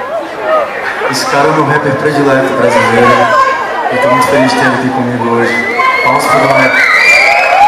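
A man sings into a microphone over loudspeakers in a large hall.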